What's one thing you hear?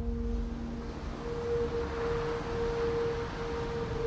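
Waves crash and foam against rocks.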